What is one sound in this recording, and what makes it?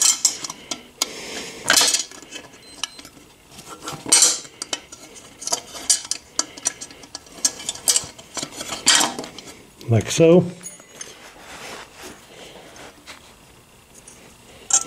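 Metal parts clink and rattle as hands fit a bracket and bar.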